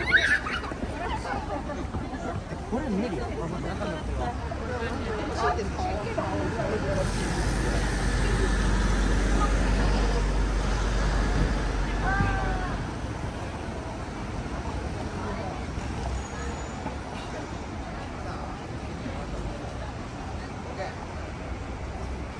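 Cars and a bus drive past on a city street.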